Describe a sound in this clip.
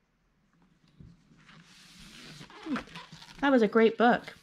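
A book is closed and turned over with a soft rustle.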